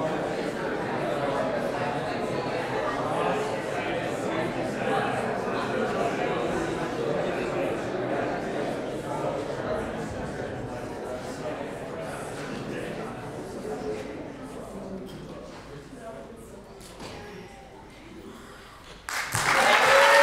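An audience murmurs and chatters in a large hall, slowly quieting.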